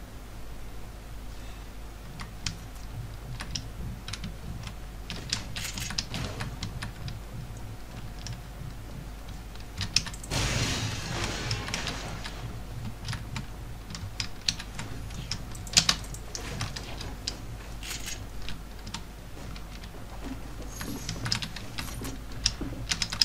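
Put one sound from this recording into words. Footsteps patter quickly on grass and wooden boards.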